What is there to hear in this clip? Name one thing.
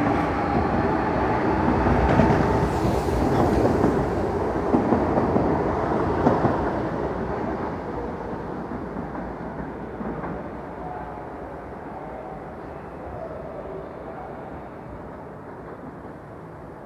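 A train rumbles and clatters past close by, then fades as it pulls away.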